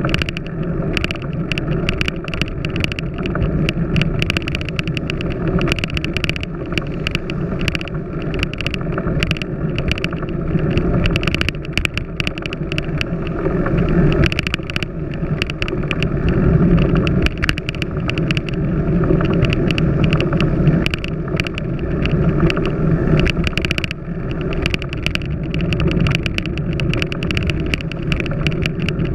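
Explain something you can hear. A bicycle's tyres roll on a paved path.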